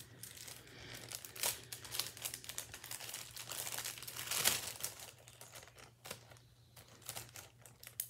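A plastic bag crinkles in hands.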